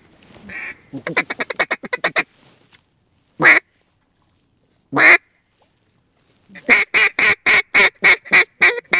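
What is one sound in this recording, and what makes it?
A duck call blows a series of loud, rapid quacks close by.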